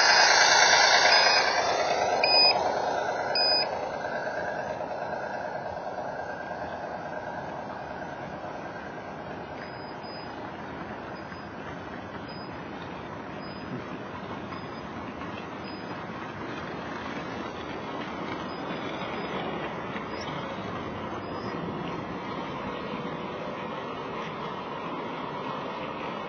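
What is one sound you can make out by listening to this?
Wagon wheels rumble and click steadily over rails close by.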